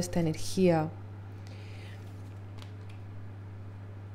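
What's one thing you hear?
A card is laid down softly on a table.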